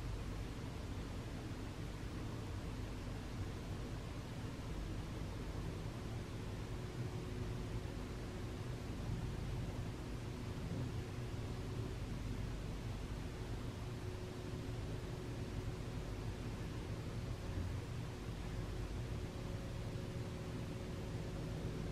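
Wind blows steadily outdoors, rustling the trees.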